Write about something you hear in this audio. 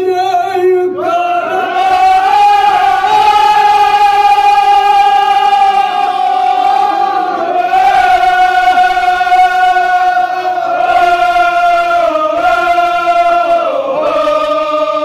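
A crowd of men chants loudly together in a sustained, wailing chorus.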